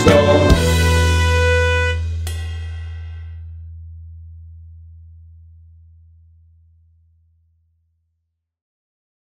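An electric guitar plays a loud chord that rings out and slowly fades.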